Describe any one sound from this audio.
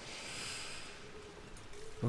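Rain falls softly.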